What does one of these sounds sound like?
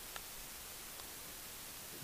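A paper towel rustles under fingers.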